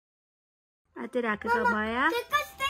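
A young boy speaks excitedly close by.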